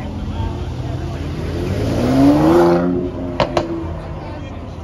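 A car engine revs up loudly as the car speeds past close by.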